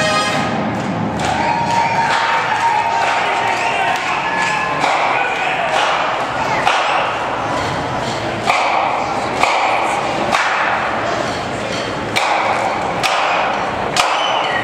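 A marching band plays loud brass music with an echo.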